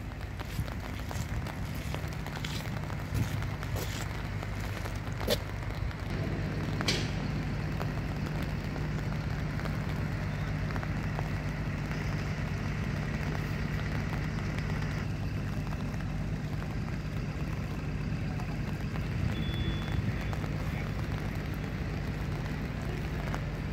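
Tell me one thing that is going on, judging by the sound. A crane's engine rumbles steadily nearby.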